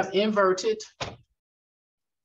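A woman speaks close to a microphone, then falls silent.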